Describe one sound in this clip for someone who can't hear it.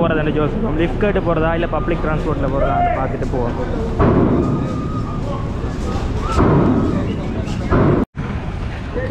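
A crowd chatters and calls out in a busy open space.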